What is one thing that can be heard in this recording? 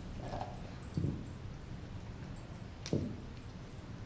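A bone knocks on concrete.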